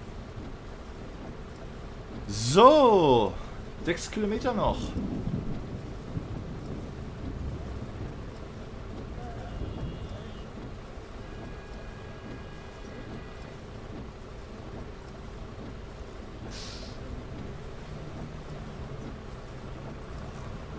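Windscreen wipers sweep back and forth.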